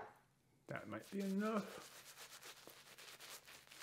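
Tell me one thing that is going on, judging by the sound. A shaving brush swishes and scrubs lather on skin.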